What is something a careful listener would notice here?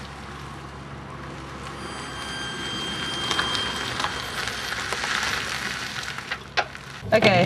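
Tyres crunch slowly on gravel.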